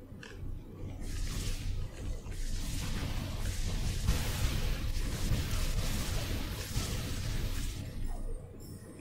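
Bursts and crackles of magical blasts ring out from a video game.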